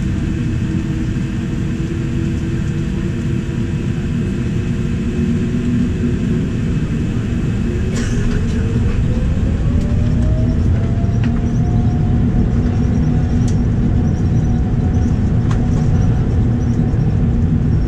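A jet engine roars loudly and steadily, its whine rising in pitch as the aircraft speeds up.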